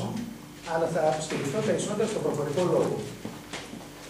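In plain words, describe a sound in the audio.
An elderly man speaks into a microphone over a loudspeaker.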